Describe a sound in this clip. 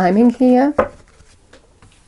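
A person shuffles a deck of cards by hand.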